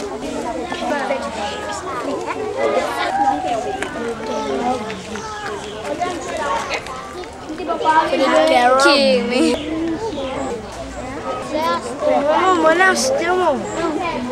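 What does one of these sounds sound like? Children chatter and laugh close by, outdoors.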